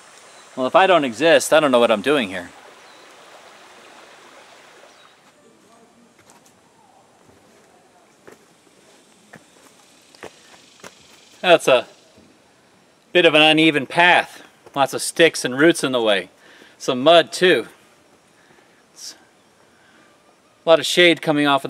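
A man speaks calmly and close by, pausing between phrases.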